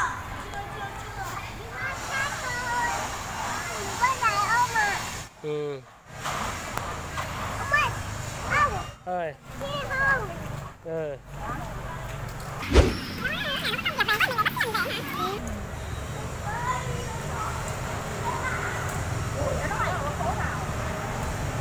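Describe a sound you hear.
A toddler babbles and calls out nearby.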